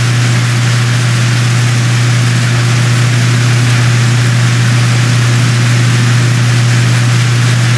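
Water sprays hard from fire hoses with a steady hiss.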